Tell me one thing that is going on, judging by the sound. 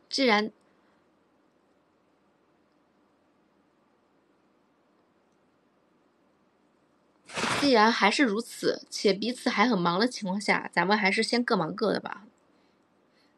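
A young woman speaks animatedly close to a microphone.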